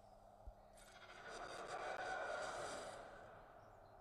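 Blaster shots and impact effects burst.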